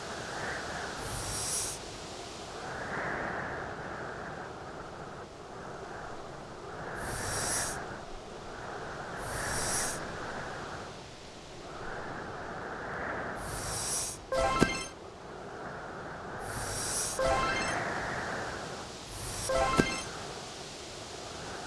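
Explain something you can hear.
A snowball slides and scrapes across ice in short bursts.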